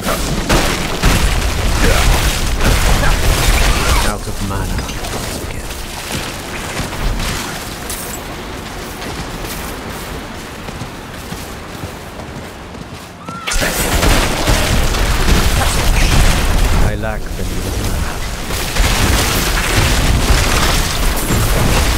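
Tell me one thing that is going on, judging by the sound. Icy magic blasts crackle and shatter in rapid bursts.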